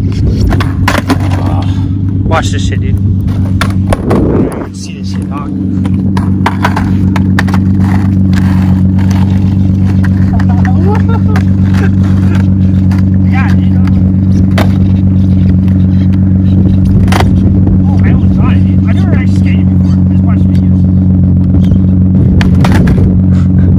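A skateboard clacks against the pavement.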